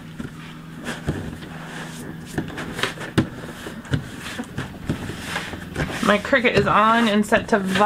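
Hands rub and smooth plastic sheeting on a mat.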